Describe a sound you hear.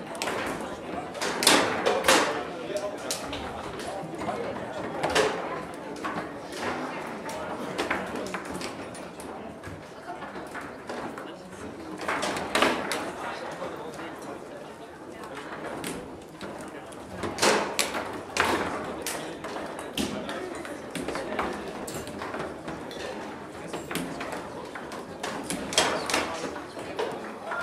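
Players spin and slide the table football rods with rattling clatter.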